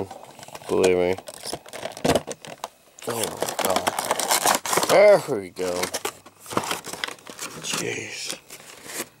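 A cardboard box with a plastic window rustles and crinkles as hands handle it close by.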